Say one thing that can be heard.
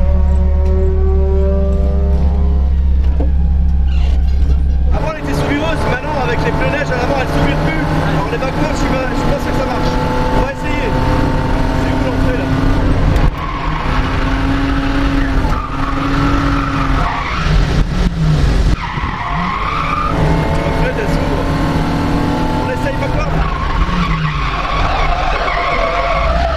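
A car engine revs hard and roars up and down close by.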